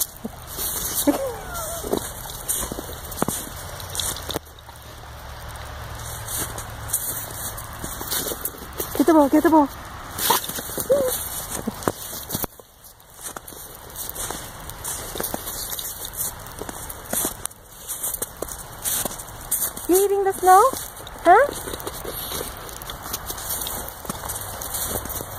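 A dog chews and mouths a rubber ball.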